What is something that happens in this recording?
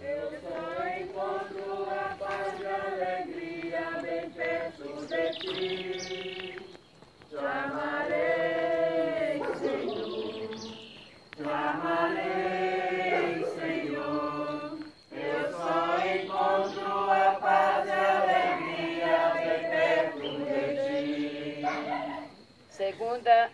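A group of men and women sing a hymn together outdoors, with pauses between lines.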